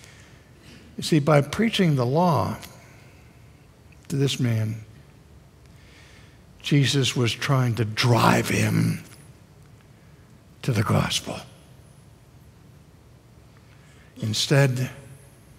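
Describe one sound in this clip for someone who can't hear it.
An older man speaks expressively into a headset microphone, in short phrases with pauses.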